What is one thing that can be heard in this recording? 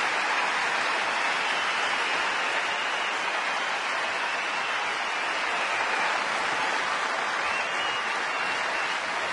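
A large crowd cheers and applauds in a big arena.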